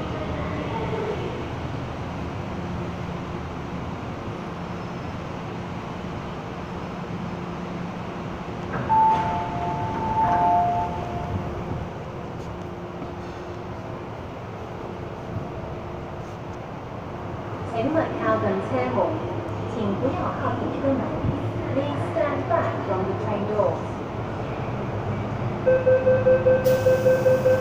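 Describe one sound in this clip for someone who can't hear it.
A train rumbles steadily.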